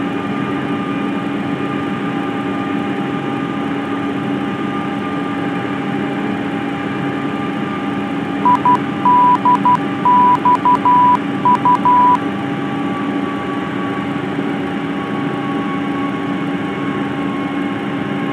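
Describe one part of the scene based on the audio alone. A jet engine drones steadily.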